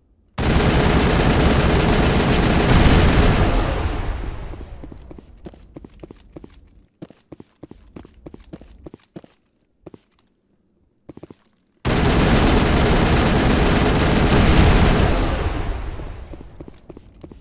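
A loud explosion roars and slowly rumbles away.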